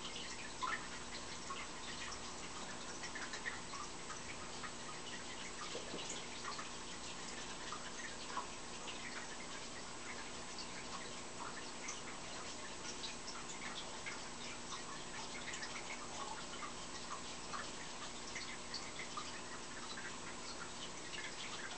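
A plush toy rustles softly as a hand turns it.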